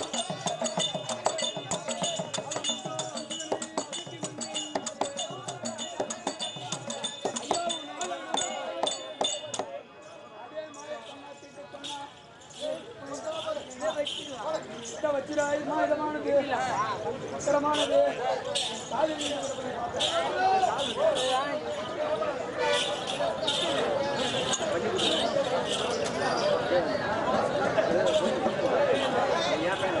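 Ankle bells jingle in quick bursts as dancers stamp and spin.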